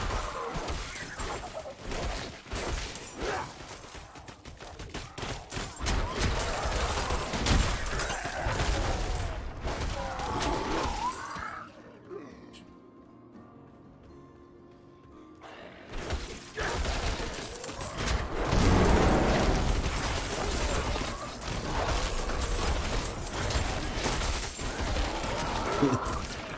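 Weapons strike and spells burst in fast, loud combat.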